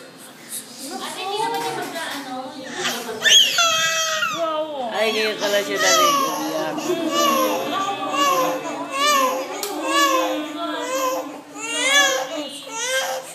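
A baby cries and wails loudly, close by.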